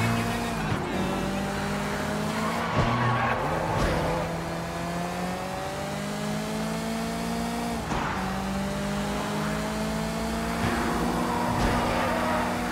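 A car engine revs hard, rising in pitch and dropping with each gear change.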